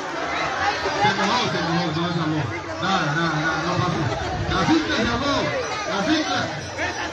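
A young woman talks nearby with animation.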